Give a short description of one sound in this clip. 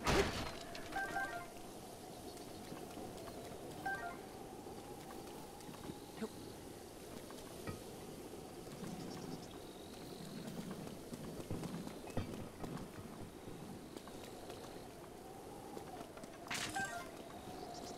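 A short bright chime rings now and then.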